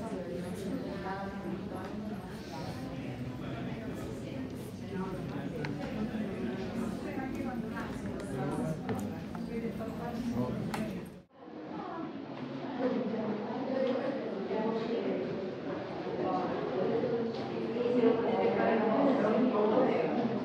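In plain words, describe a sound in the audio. A crowd of visitors chatters in an echoing hall.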